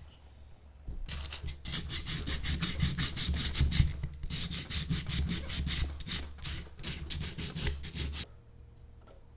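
Steel wool rubs quickly back and forth over wood.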